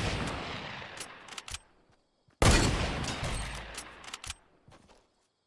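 A rifle's bolt clicks sharply as it is reloaded.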